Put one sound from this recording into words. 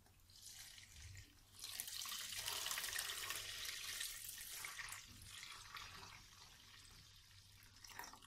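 Water pours from a kettle into a metal bowl.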